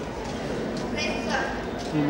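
A young woman speaks through a microphone over loudspeakers.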